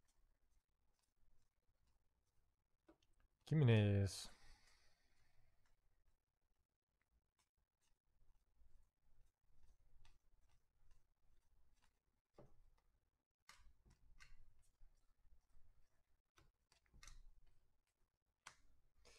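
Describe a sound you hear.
Trading cards slide and flick softly as they are shuffled by hand.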